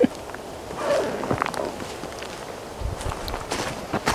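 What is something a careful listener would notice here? A man gets up from a creaking chair.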